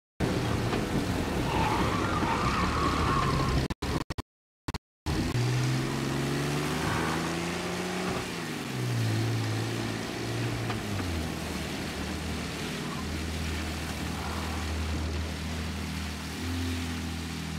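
A car engine hums and shifts pitch as it accelerates.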